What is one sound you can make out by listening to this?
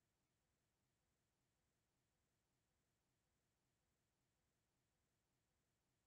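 A clock ticks steadily and softly.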